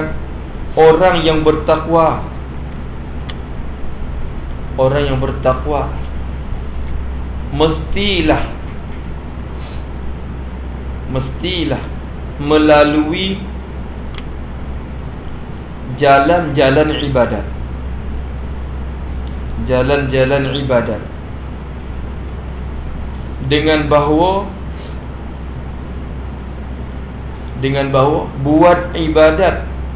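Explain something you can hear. A man speaks slowly through a microphone, in short phrases with long pauses.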